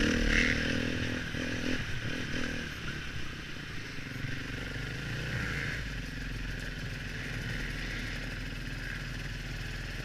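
A dirt bike engine revs and buzzes close by.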